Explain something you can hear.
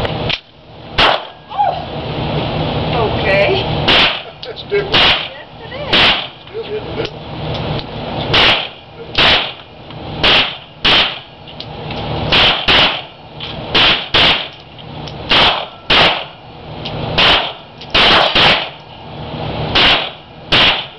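Gunshots crack loudly one after another, echoing off hard walls.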